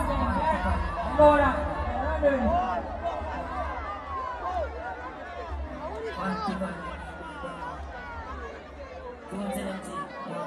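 A young man raps energetically into a microphone over loudspeakers.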